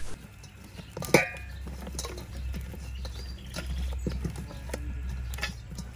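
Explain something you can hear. Hands squish and rub seasoning into raw fish in a metal bowl.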